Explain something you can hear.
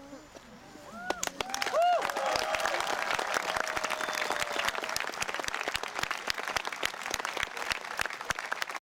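A crowd applauds with lively clapping.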